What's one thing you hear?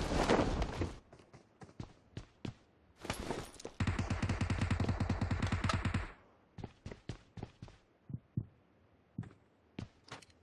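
Footsteps thud on a hard floor indoors.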